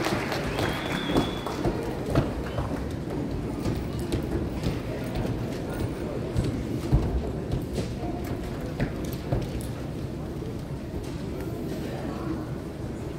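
An audience murmurs and rustles quietly in the hall.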